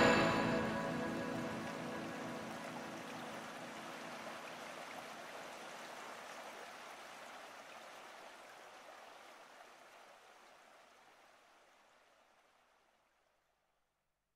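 A guitar chord rings out and slowly fades away.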